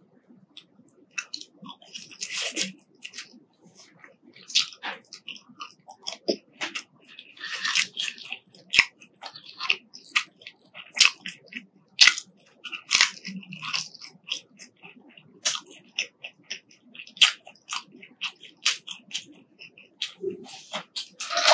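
Crisp fries crunch loudly up close as a young woman chews.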